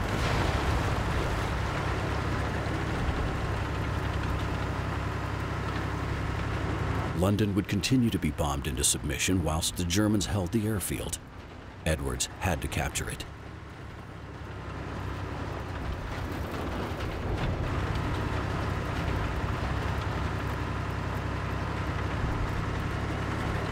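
A tank engine rumbles steadily as a tank drives along.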